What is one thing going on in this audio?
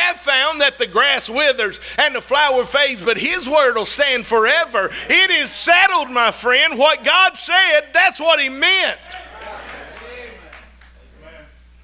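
A middle-aged man preaches loudly and with passion through a microphone.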